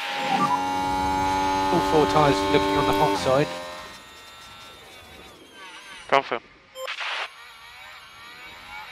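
A racing car engine whines at high revs.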